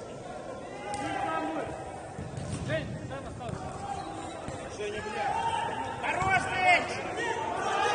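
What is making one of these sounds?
Players shout to each other in an echoing indoor hall.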